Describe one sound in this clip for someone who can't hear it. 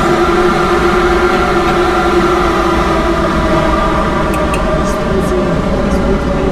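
An electric train motor hums steadily as the train rolls along the track.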